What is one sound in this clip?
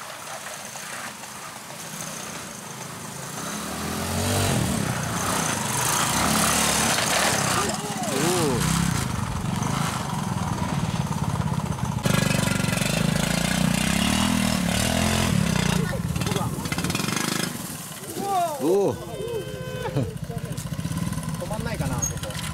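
A motorbike engine putters and revs nearby.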